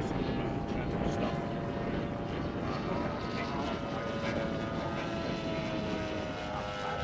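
A small model airplane engine drones steadily overhead.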